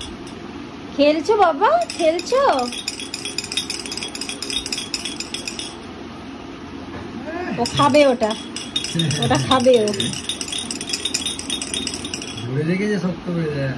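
A man talks to a baby up close in a playful, sing-song voice.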